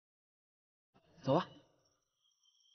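A young man speaks briefly and softly.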